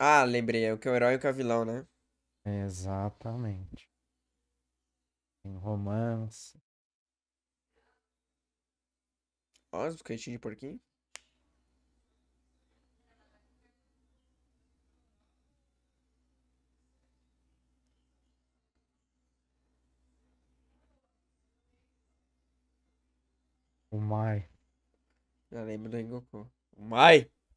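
A young man talks cheerfully through a headset microphone, in short bursts.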